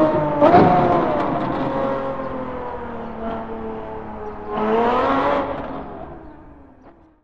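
A sports car engine roars at high revs, then fades into the distance.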